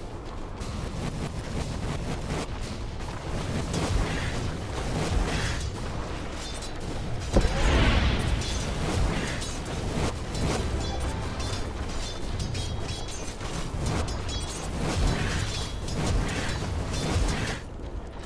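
Game fight effects clash and crackle with magic blasts.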